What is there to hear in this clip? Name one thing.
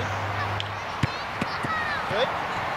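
A soccer ball thumps sharply as it is kicked and caught.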